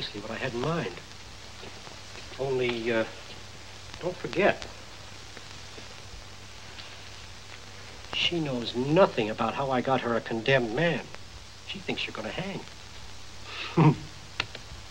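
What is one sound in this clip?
An elderly man speaks with animation, close by.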